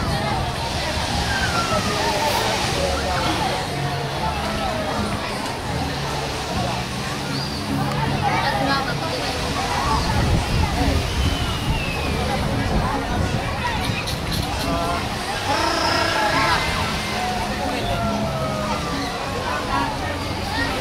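A crowd of people chatters and calls out on a beach, outdoors.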